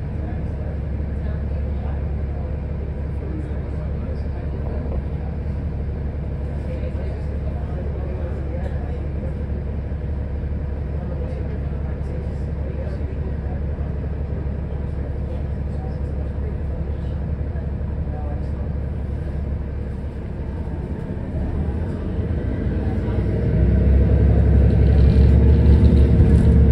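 A car engine rumbles low and steady, heard from inside the car, and grows louder as the car pulls away.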